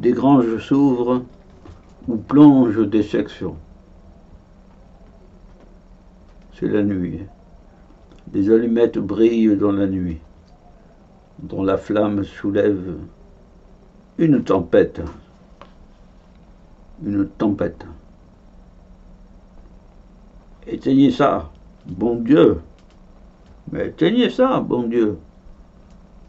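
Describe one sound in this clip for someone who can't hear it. An elderly man reads out slowly through a microphone, with long pauses.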